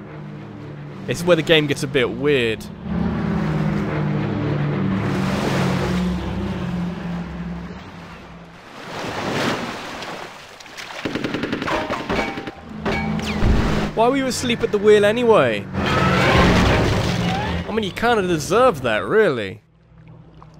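A man shouts in an exaggerated, cartoonish voice.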